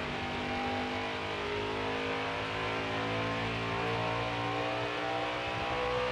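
A racing car engine roars steadily, its pitch slowly climbing as it speeds up.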